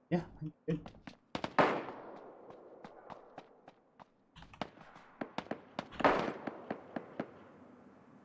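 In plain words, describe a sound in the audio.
Footsteps tap quickly across a hard floor and snow.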